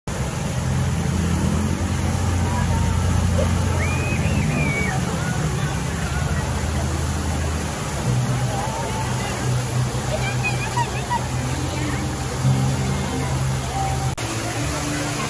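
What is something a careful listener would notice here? Water splashes steadily from a fountain.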